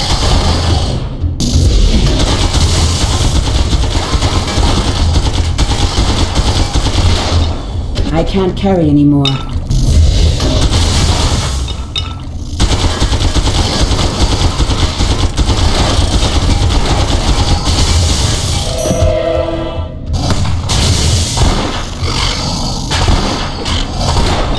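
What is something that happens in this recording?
Weapons clash and thud against monsters.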